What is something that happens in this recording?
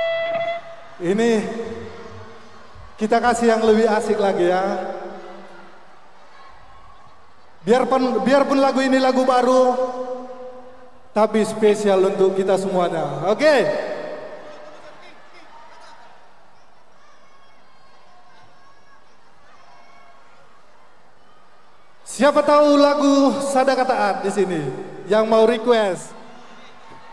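A man sings loudly through a loudspeaker in a large echoing space.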